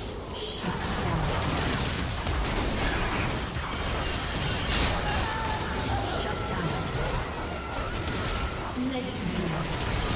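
Fantasy battle sound effects crackle, whoosh and clash without a break.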